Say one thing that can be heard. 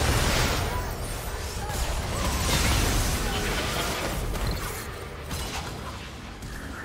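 Loud magical blasts boom.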